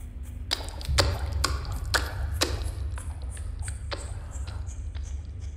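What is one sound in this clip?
Footsteps clang on a metal grate floor.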